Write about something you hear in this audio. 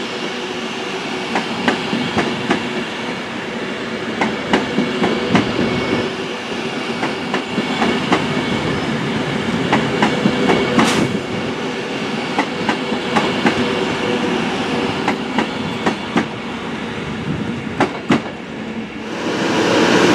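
A train rolls past with wheels clacking over rail joints.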